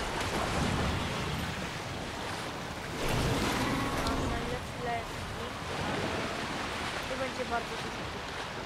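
Wind rushes steadily past during a glide.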